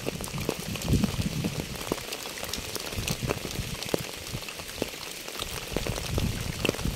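Rain patters steadily on wet pavement and fallen leaves, with many small drops tapping.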